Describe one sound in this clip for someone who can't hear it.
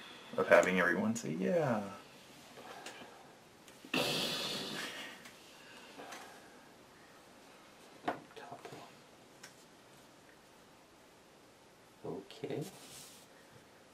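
Playing cards slide across a table and tap as they are placed.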